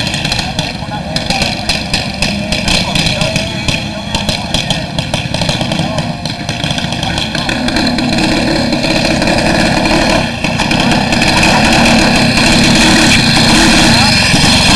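A small kart engine runs loudly and close by, revving higher toward the end.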